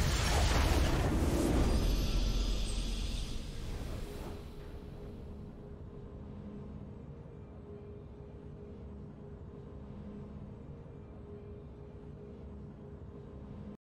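A triumphant fanfare swells.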